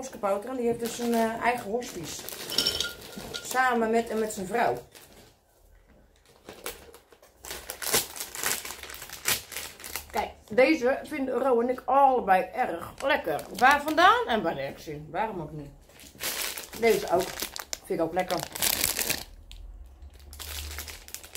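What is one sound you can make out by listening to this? A plastic bag crinkles and rustles in hands.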